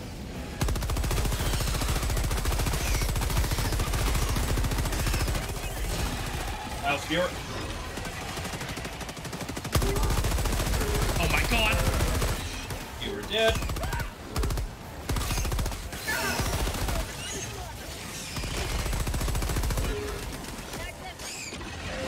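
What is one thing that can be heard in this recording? A heavy machine gun fires in rapid bursts.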